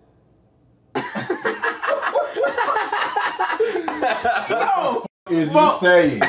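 Several young men laugh and shout loudly with excitement.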